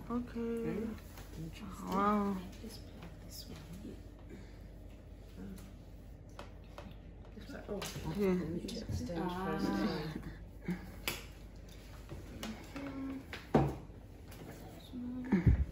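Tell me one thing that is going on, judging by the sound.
A middle-aged woman talks casually nearby.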